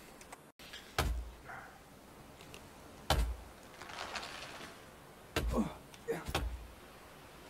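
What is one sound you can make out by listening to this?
An axe strikes a tree trunk with dull, heavy thuds.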